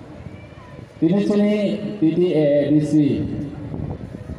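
A man speaks loudly through a microphone and loudspeakers outdoors.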